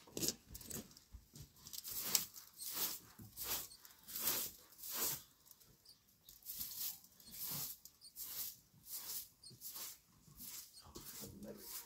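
A straw broom sweeps briskly over a rug in quick, repeated strokes.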